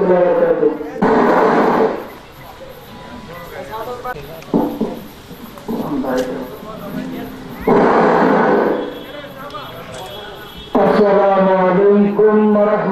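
A man preaches loudly into a microphone, sometimes chanting in a drawn-out, melodic voice.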